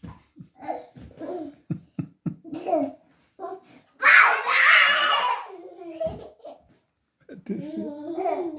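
Small children babble and chatter nearby.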